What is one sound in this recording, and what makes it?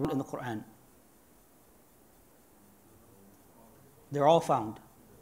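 A man speaks calmly into a clip-on microphone, with pauses between phrases.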